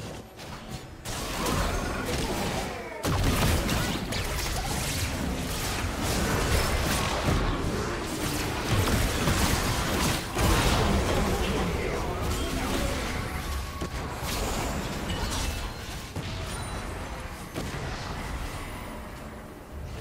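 Spell blasts and hits crackle and boom in a game battle.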